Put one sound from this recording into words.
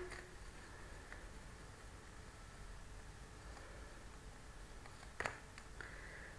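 Playing cards rustle and tap softly in a hand.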